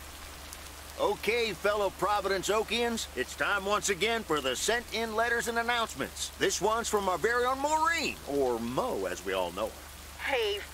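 A middle-aged man speaks cheerfully into a microphone.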